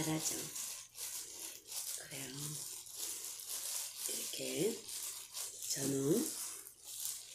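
A woman speaks softly and briefly, close to the microphone.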